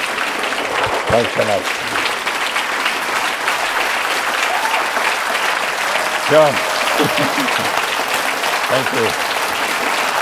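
People in the crowd whoop and cheer now and then.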